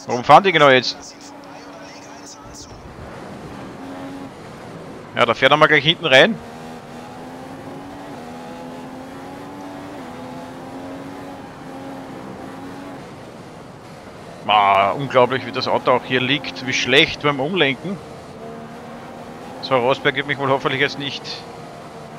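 A racing car engine whines steadily, its pitch rising and falling with the gears.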